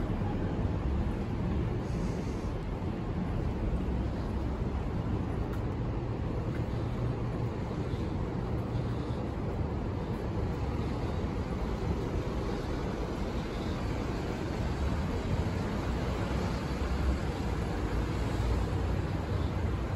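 City traffic rumbles steadily on a nearby street.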